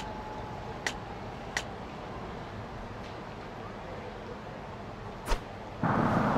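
Menu clicks tick sharply.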